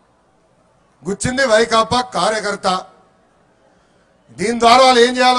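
A young man speaks forcefully into a microphone over loudspeakers.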